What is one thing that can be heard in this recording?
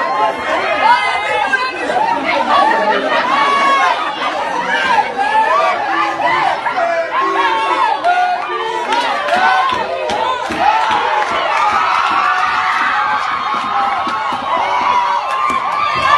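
A crowd of teenagers shouts and clamours close by.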